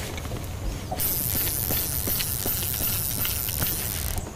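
A fishing reel clicks and whirs as line is reeled in.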